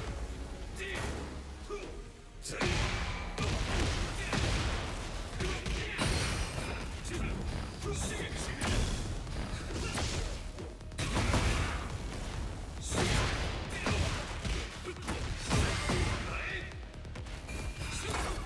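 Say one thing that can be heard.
Heavy blows land with booming impacts and crackling bursts.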